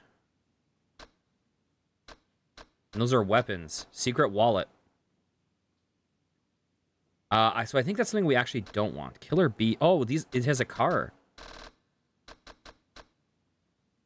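Short electronic menu clicks tick now and then.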